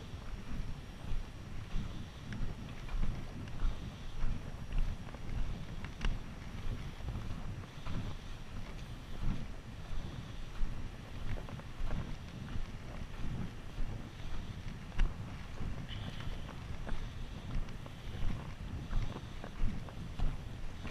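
Footsteps crunch steadily on loose gravel and stones.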